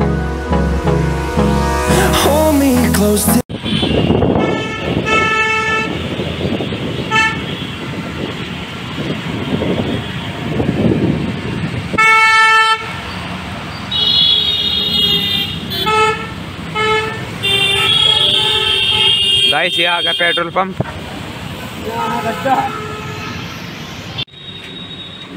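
Traffic rumbles and hisses along a wet road.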